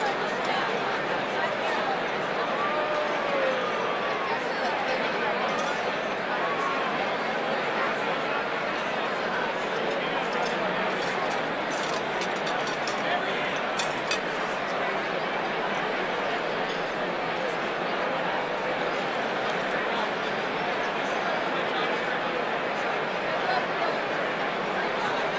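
A large crowd chatters loudly in a big echoing hall.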